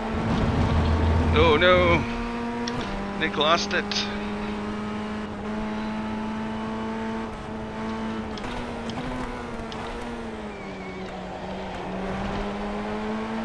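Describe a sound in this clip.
A racing car engine hums steadily, its pitch shifting slightly with gear changes.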